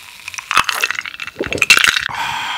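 A man sighs with satisfaction close to a microphone.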